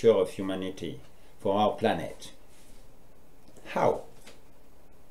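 An older man speaks calmly and close up, in short phrases with pauses.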